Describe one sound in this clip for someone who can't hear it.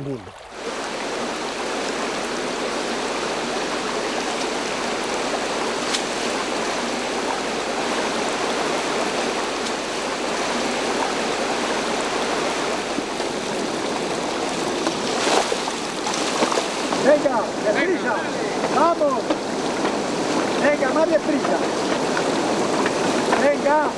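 A shallow stream babbles steadily outdoors.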